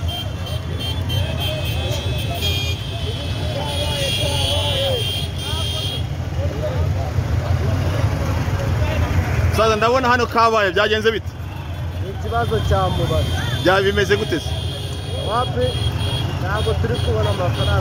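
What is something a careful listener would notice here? Motorcycle engines idle and rumble nearby in the street.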